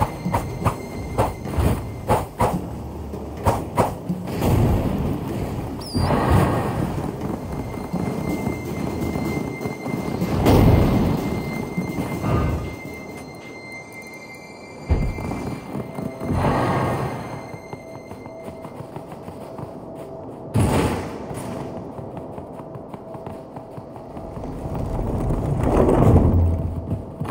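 Footsteps tread quickly on grass and stone.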